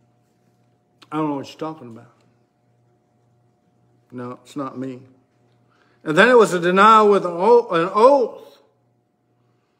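An older man speaks close by in short, calm phrases, with pauses between them.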